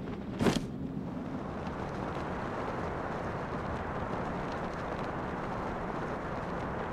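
Wind rushes steadily past as a figure falls.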